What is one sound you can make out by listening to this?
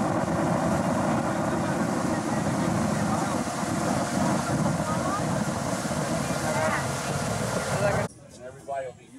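Wind roars steadily over open water.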